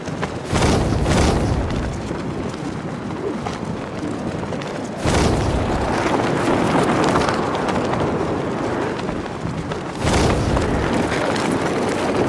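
Wind rushes loudly, surging in strong gusts.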